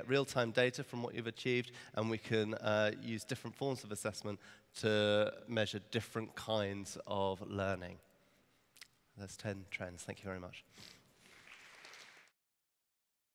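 A man speaks with animation into a headset microphone in a large hall.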